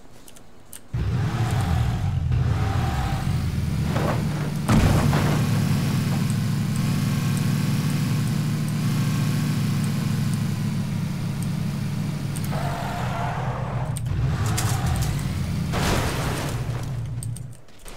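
A car engine roars steadily as a vehicle drives fast.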